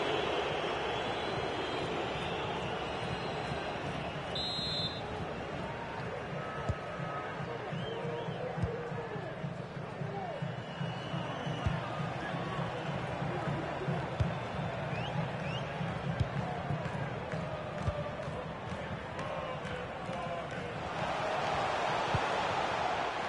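A stadium crowd roars steadily, swelling louder near the end.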